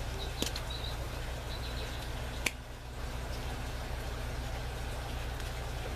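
A small plastic cap clicks as hands fit it onto a stem.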